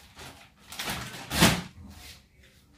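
A bag thuds onto a bed.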